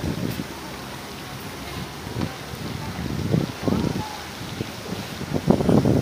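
A fountain splashes softly in the distance.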